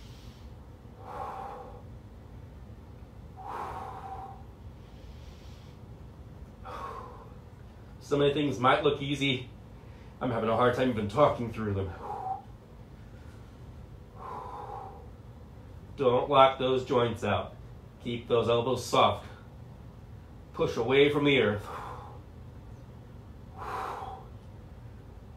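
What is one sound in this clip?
A man breathes out slowly and deeply.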